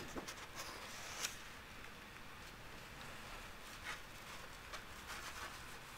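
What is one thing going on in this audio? Paper pages rustle softly as they are handled.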